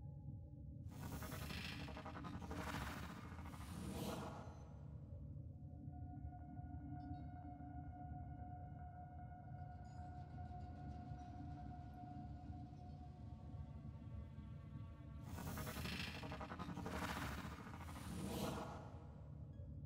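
A blade swooshes through the air several times.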